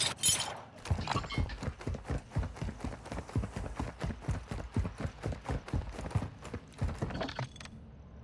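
Footsteps thud quickly and evenly on the ground.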